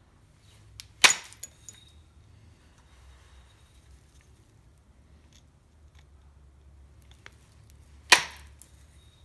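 An antler billet strikes a flint stone with sharp cracks.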